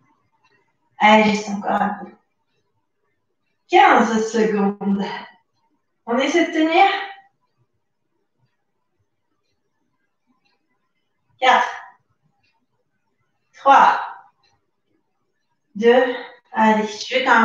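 A young woman speaks calmly in short phrases, close by.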